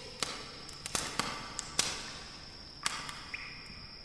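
A body drops and thuds onto a stone floor.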